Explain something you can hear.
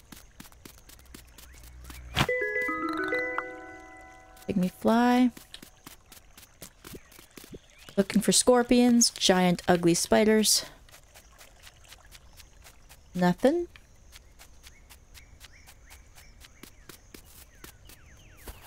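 Quick light footsteps patter on soft ground.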